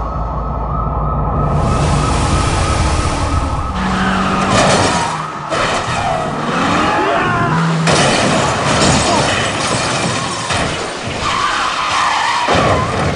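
A car engine roars as it races.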